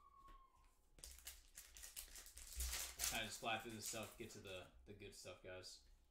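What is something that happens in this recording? A foil wrapper crinkles and tears open close by.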